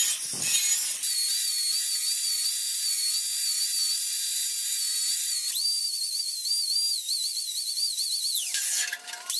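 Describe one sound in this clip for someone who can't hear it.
An angle grinder spins freely with a steady high whine.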